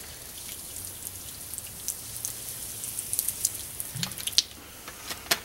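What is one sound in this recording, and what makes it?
Soda pours and splashes onto a hard floor.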